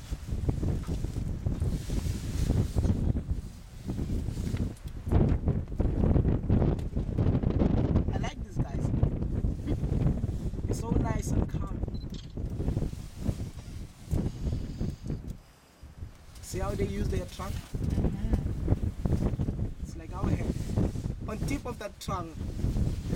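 An elephant tears and rustles leafy branches close by.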